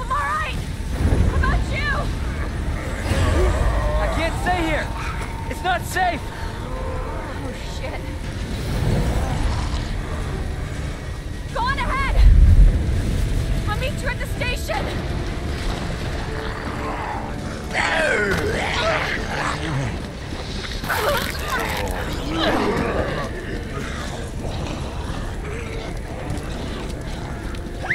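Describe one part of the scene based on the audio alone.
Fires crackle and roar.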